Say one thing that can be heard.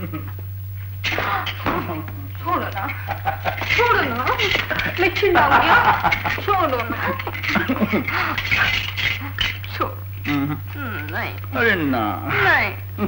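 A woman cries out and pleads in distress.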